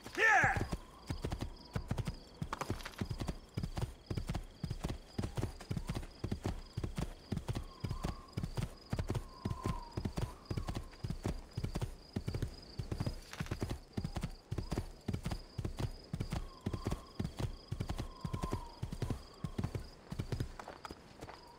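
A horse gallops with rapid, heavy hoofbeats.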